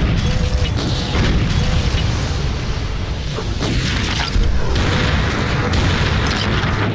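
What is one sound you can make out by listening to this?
A heavy gun fires in rapid, booming bursts.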